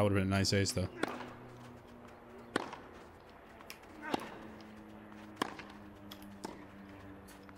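A tennis ball is struck with a racket, back and forth.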